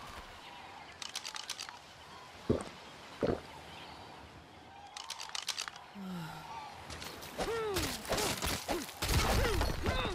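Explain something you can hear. Water rushes over rocks nearby.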